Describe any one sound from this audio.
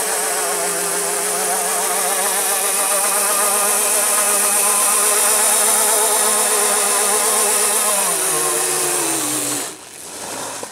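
Quad bike tyres spin and squeal on asphalt.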